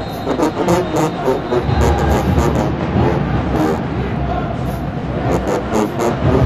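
Band members chant and shout together in rhythm.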